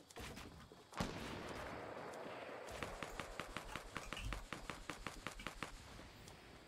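Game building pieces snap into place in a quick clattering run.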